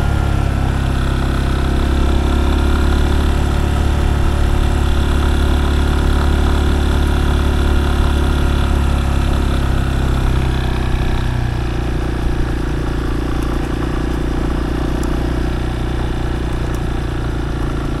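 Tyres crunch and rumble over a rough dirt track.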